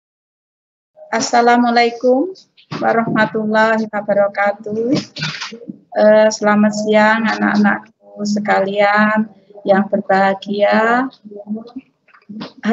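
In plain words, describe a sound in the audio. A woman speaks calmly through a microphone on an online call.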